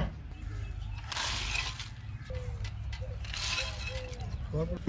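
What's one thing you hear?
Dry feed pellets pour and rattle into a trough.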